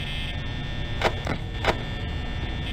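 A surveillance monitor flips up with a clatter.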